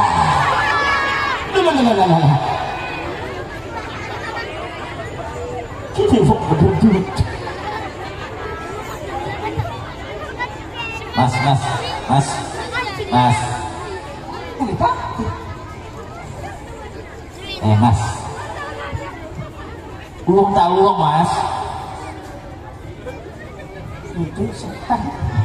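A man speaks with animation through a microphone over loudspeakers outdoors.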